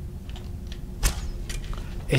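Footsteps clank on a stone floor.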